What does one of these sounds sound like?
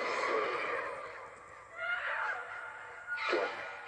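A young woman speaks through a loudspeaker.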